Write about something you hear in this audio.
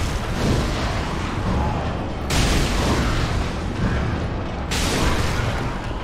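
A fireball bursts with a fiery whoosh.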